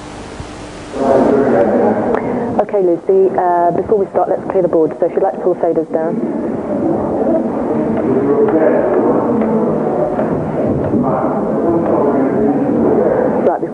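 A crowd of young people murmurs and chatters in a large echoing hall.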